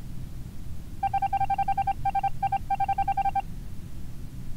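A rapid series of electronic blips sounds as text types out.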